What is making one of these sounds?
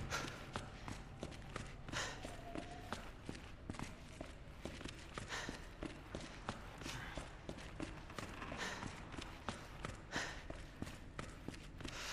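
Footsteps tap quickly and steadily on a hard floor.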